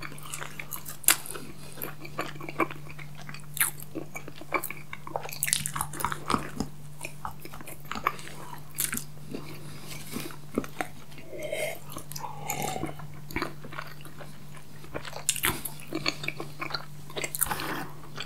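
Crunchy chocolate snacks crackle and crunch close to a microphone.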